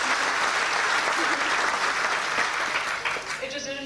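A middle-aged woman speaks into a microphone.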